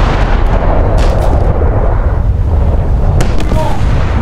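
Shells explode with dull distant thuds.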